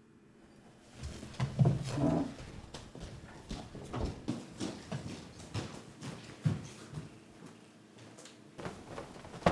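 Footsteps thud softly on a floor indoors.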